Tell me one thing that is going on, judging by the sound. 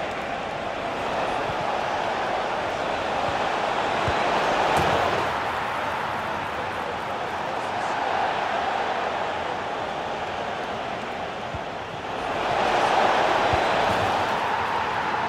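A stadium crowd roars and chants steadily, swelling and falling.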